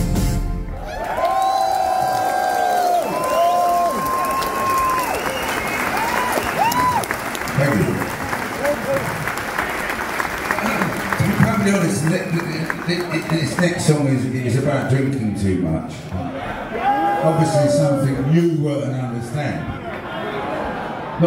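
A man sings into a microphone, amplified through loudspeakers.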